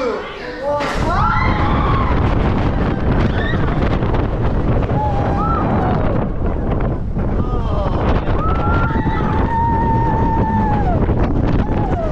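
A roller coaster rumbles and rattles along its track.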